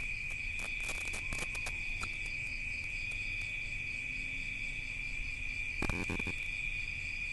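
Small pops and crackles come from a covered pan.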